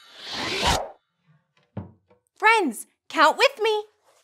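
A wooden chest lid thumps shut.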